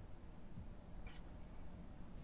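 A glass clinks on a table.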